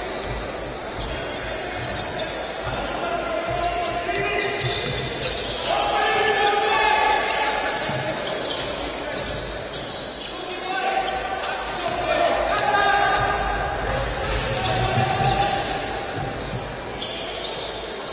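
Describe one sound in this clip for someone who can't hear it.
A small crowd murmurs in an echoing hall.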